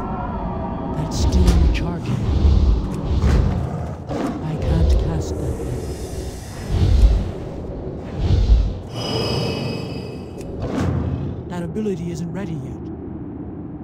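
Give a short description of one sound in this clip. Magic spells burst and crackle in short, repeated blasts.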